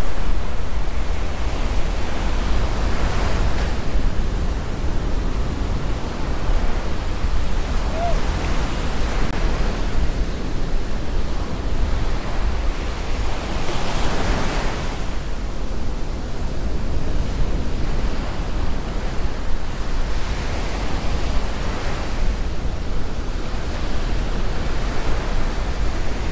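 Waves break and wash onto the shore nearby.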